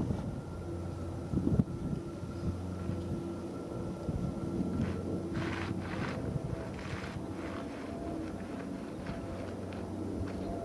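A Boeing 787 jetliner rolls down the runway as its engines whine.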